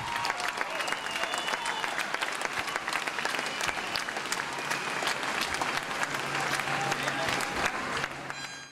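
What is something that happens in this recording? An acoustic guitar is strummed quickly.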